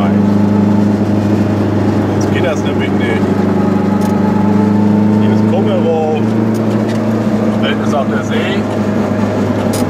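An old car engine hums steadily from inside the car while driving.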